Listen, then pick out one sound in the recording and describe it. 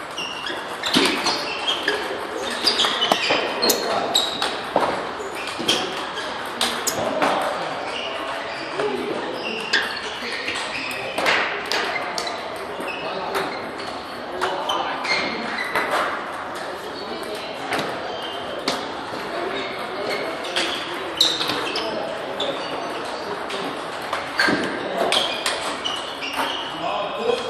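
Balls bounce and click from other tables around a large echoing hall.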